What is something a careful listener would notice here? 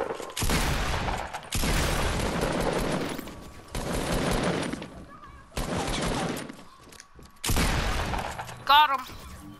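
Loud bursts of gunfire crackle in quick rounds.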